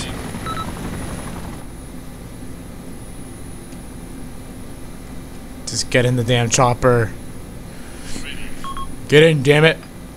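A helicopter's rotors and engine drone steadily.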